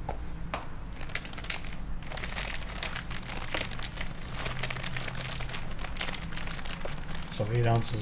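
A plastic bag crinkles as it is squeezed.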